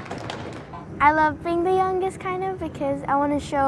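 A young girl speaks calmly and cheerfully close to a microphone.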